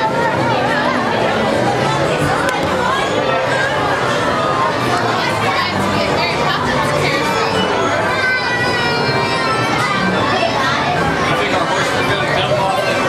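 Cheerful carousel music plays throughout.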